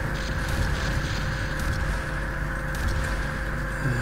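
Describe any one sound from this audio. A heavy gun fires loud blasts.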